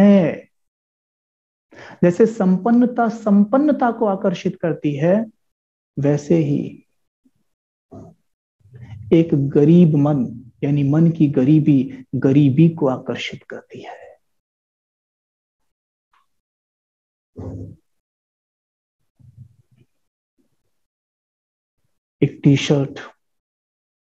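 A man speaks calmly and expressively into a close microphone, with pauses.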